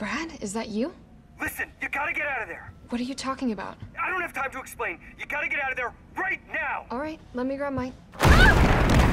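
A young woman talks urgently into a phone.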